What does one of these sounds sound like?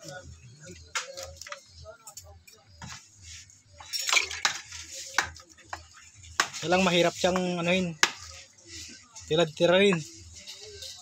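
A knife chops into meat with sharp knocks.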